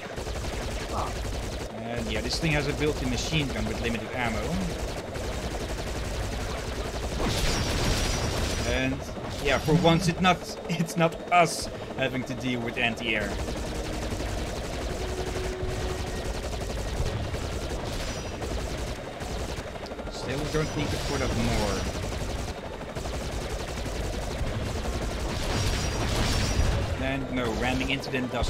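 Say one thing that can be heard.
A helicopter's rotor whirs steadily.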